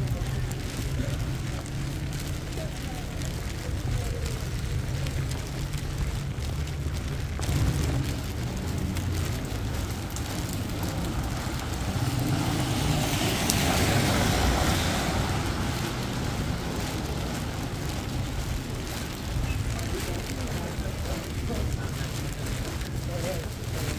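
Rain patters steadily on wet pavement outdoors.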